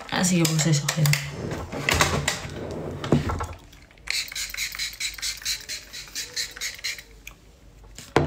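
Objects clatter and knock as they are handled.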